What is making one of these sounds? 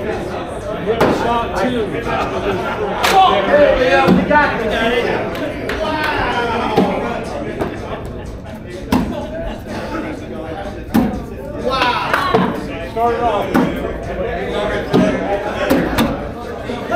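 Beanbags thud onto a wooden board.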